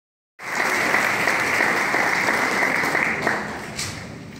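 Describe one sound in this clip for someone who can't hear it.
An audience applauds in a large hall, then the clapping dies away.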